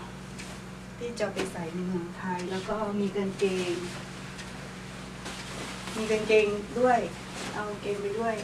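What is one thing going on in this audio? A young woman talks close by with animation.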